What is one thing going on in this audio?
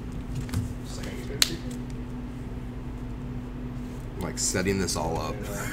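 Cards rustle as they are shuffled in hand.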